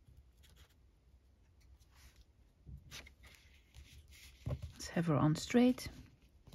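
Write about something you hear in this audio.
Paper rustles and crinkles softly under hands.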